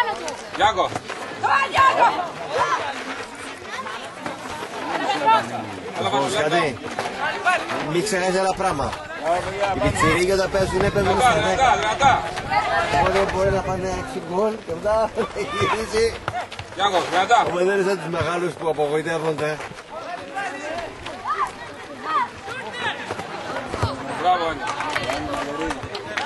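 Young football players shout and call to each other outdoors.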